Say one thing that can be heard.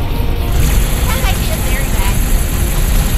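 Laser cannons fire in quick bursts.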